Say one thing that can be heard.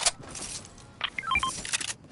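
A short chime sounds as an item is picked up.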